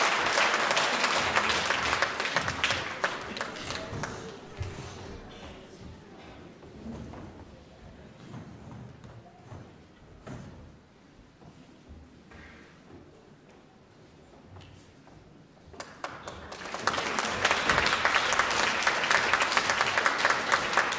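An audience applauds in a large echoing hall.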